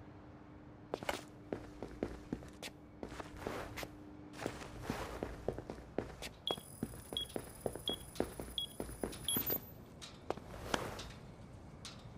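Soft footsteps patter quickly across a hard floor.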